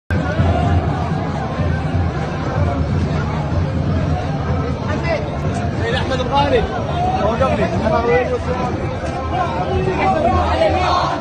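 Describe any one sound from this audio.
A large crowd of men chants and shouts outdoors.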